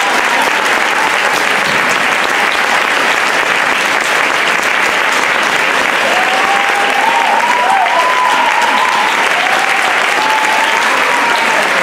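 A large crowd cheers and claps loudly.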